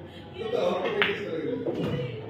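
A cue strikes a ball with a sharp click.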